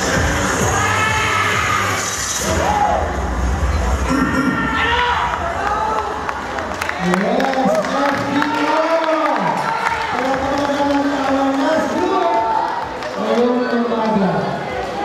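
Loud music with singing plays over loudspeakers in a large open space.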